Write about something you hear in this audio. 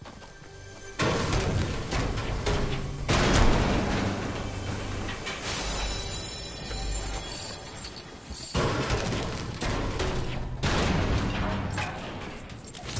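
A pickaxe strikes hard surfaces with sharp clanks.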